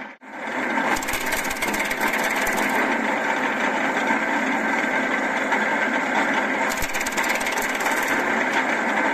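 Branches crackle and snap as a chipper shreds them.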